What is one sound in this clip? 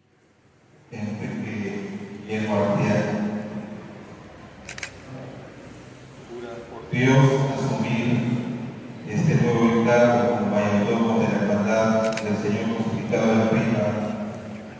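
A man speaks calmly into a microphone, heard over loudspeakers in an echoing room.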